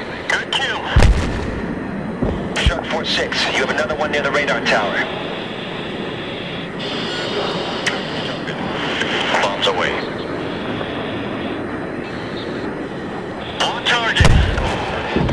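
Bombs explode with deep, heavy booms.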